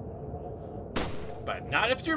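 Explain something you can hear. A gunshot cracks once, sharp and loud.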